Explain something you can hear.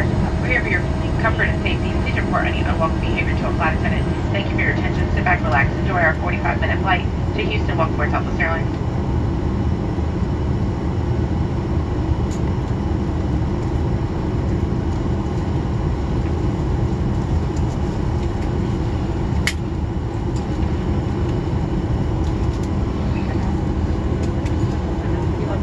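An aircraft engine drones with a steady, low rumble.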